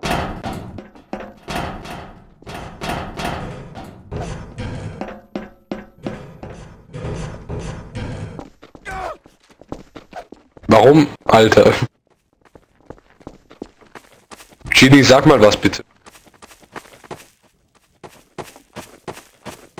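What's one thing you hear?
Footsteps clank on metal and hard floors.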